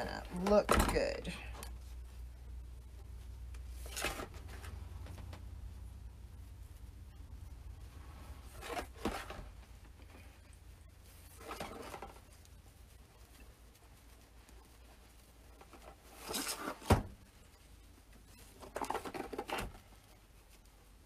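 Ribbon rustles and crinkles as it is folded and twisted.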